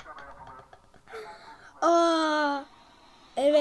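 A young boy laughs close to a microphone.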